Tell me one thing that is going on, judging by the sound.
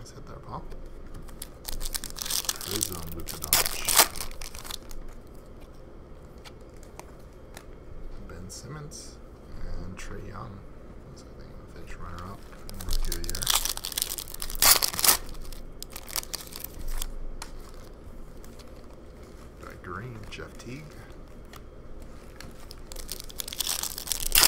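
Foil wrappers crinkle and rustle as packs are torn open.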